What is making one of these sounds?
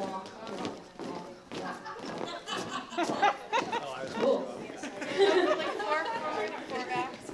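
A crowd of men and women chatter and laugh nearby.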